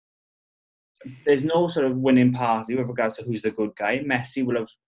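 A young man speaks with animation over an online call.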